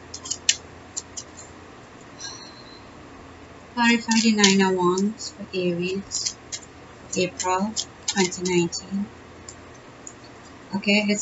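Playing cards are shuffled by hand, riffling and flicking.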